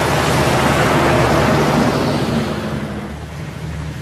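Wind blows over open ground.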